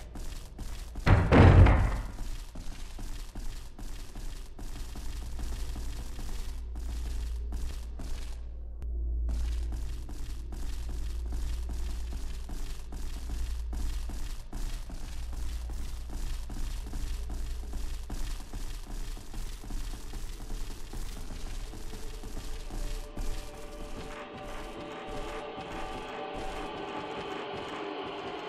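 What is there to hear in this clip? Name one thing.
Footsteps tap on wooden floorboards.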